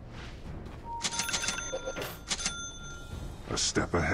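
Short electronic chimes and clicks ring out from a game.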